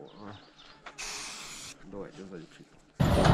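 An aerosol can hisses in short bursts.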